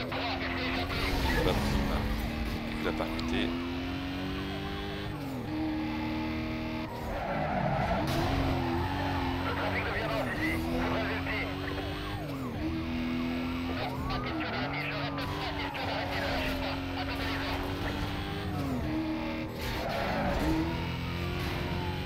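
A racing car engine roars at high revs, shifting gears up and down.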